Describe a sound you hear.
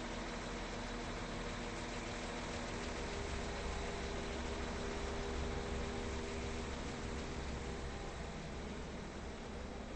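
An electric train hums and rumbles as it pulls away and fades.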